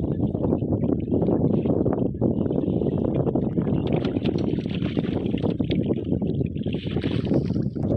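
Water splashes and drips as a fishing net is hauled out of a lake.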